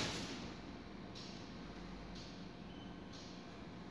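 A glass door slides shut.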